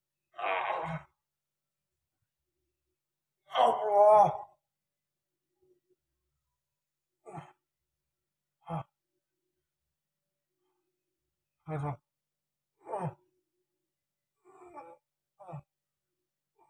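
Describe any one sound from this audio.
A man groans and cries out in pain in short bursts, close by.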